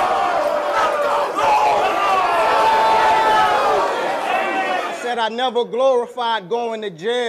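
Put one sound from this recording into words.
A man raps loudly and forcefully into a microphone.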